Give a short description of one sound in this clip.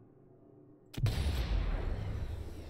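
A rifle fires a loud booming shot.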